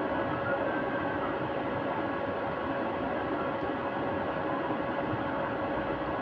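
Buttons on a game controller click softly.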